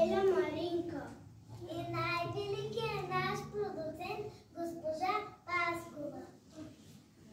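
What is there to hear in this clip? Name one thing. Young children sing together in a high, clear voice close by.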